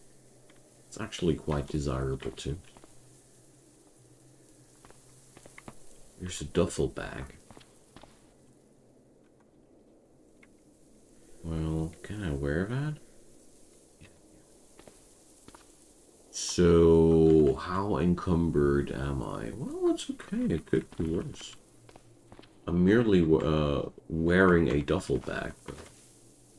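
A young man talks calmly and close into a microphone, in short bursts.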